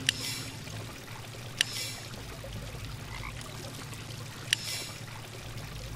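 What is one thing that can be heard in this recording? Bright sparkling chimes ring out.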